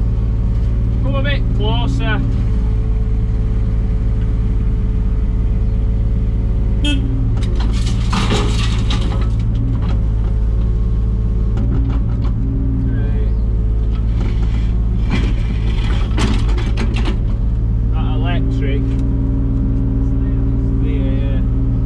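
A digger's hydraulics whine as the arm moves.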